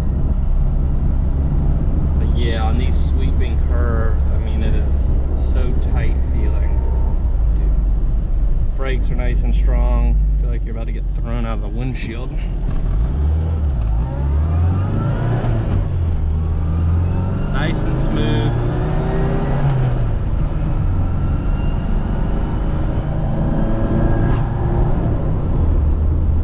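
A small car engine hums and revs while driving.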